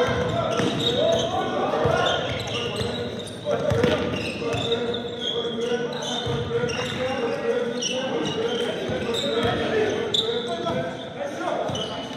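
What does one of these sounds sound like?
A basketball bounces with echoing thuds.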